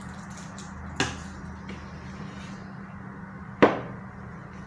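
A knife knocks against a cutting board.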